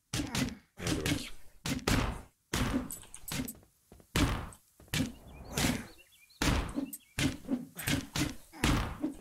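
Heavy blows thud as a fighter strikes at attackers.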